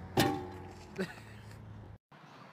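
A man thuds onto the pavement.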